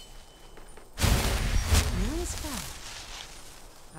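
A magic spell blasts with a loud whooshing roar.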